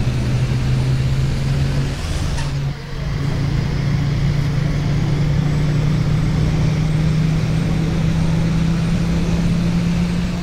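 A bus engine hums steadily and slowly rises in pitch as the bus speeds up.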